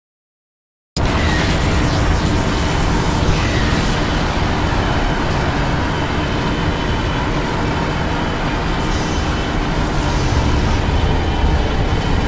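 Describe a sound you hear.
A race car engine roars steadily at high speed.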